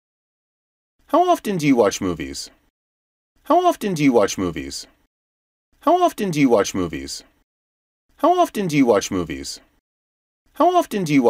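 A man speaks clearly and slowly close to a microphone, repeating a short question several times.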